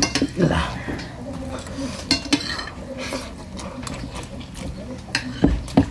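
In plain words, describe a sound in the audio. A young man chews food wetly, close to the microphone.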